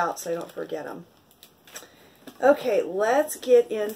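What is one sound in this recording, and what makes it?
Packing tape peels off a roll with a sticky rasp.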